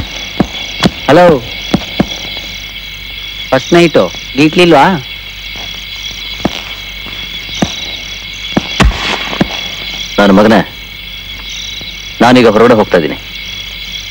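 A man speaks in short, tense bursts nearby.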